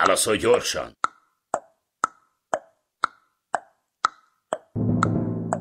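A game clock ticks steadily.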